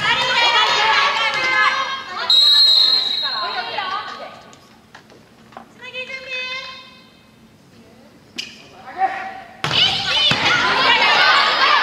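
Players shout and cheer in a large echoing hall.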